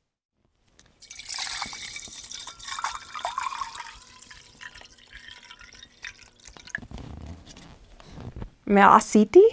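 Water pours from a jug into a pot.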